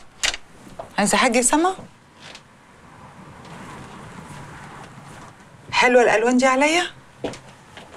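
A middle-aged woman speaks with feeling, close by.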